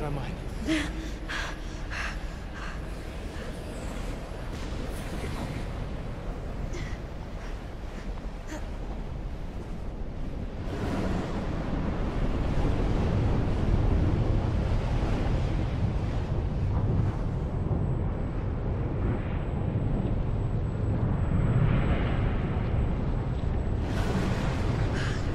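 A strong wind roars and howls.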